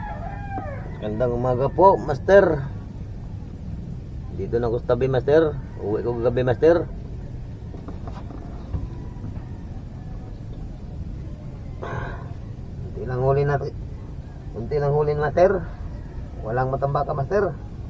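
A middle-aged man speaks close by, in short bursts.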